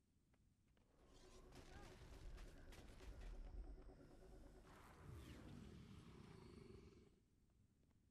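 Spells crackle and blast loudly during a fight.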